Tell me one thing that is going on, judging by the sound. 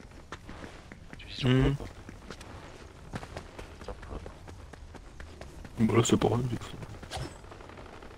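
Quick footsteps patter in a video game.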